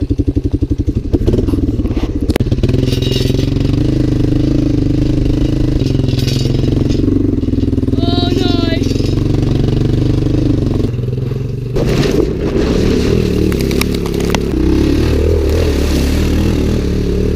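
A quad bike engine roars steadily close by.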